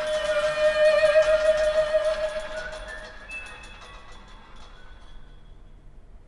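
A small chamber ensemble of strings plays a held chord that rings out in a resonant hall.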